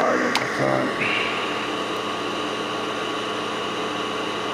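A hot air tool blows with a steady hiss.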